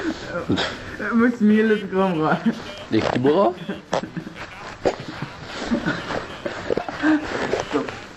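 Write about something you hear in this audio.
A teenage boy laughs nearby.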